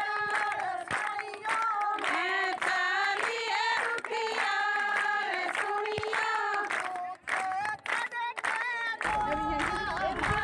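A woman sings loudly and with feeling.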